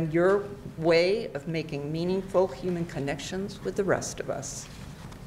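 An elderly woman speaks calmly into a microphone.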